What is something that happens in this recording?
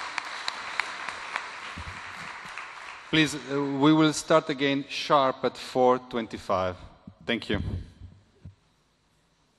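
A middle-aged man speaks calmly into a microphone, heard over loudspeakers in a large echoing hall.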